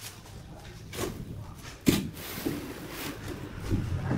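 A metal wheelbarrow rattles as soil is tipped out of it.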